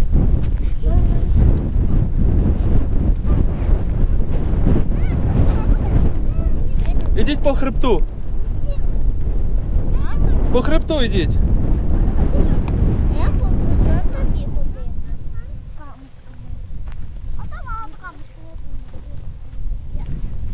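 Wind blows hard and gusts across the microphone outdoors.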